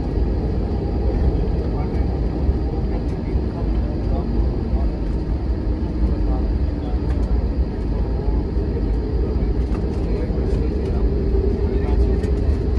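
Jet engines roar steadily as an airliner taxis.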